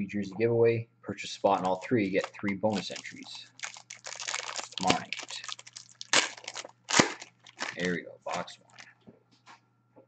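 Foil wrapping crinkles and tears.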